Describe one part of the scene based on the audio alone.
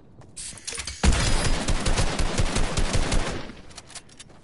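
Gunfire rattles loudly in a rapid burst.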